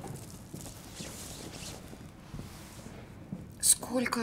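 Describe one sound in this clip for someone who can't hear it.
Paper rustles softly.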